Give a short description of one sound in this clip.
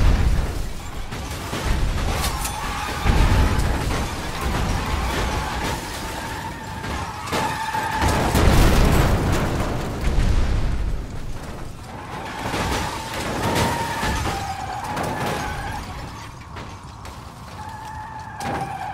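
Metal crashes and crunches in collisions.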